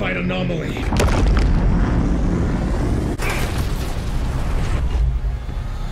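A deep rumble of an explosion booms.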